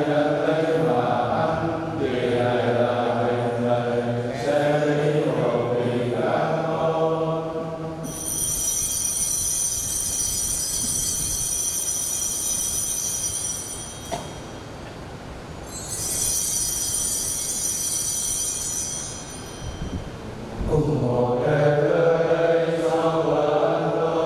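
A large group of men sings together in an echoing hall.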